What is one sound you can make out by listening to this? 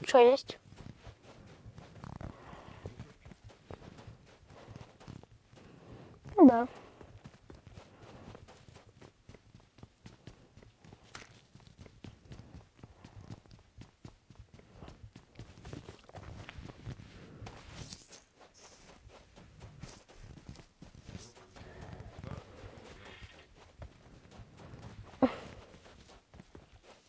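Footsteps run quickly over sand and wooden boards.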